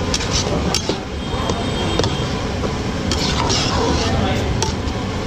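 Vegetables sizzle and bubble in a pot.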